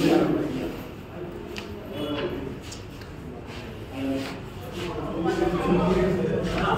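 A small crowd murmurs nearby.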